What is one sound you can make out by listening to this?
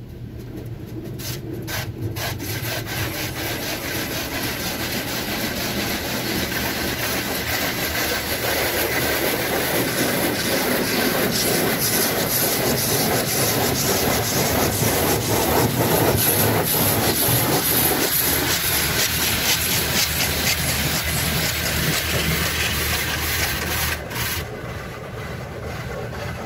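Water sprays and drums against a car's windows, heard from inside the car.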